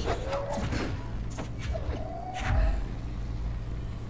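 A heavy crate crashes and clatters nearby.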